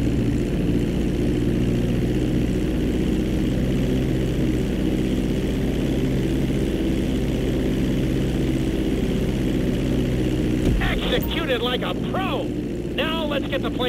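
A small propeller plane's engine drones steadily as it rolls along a runway.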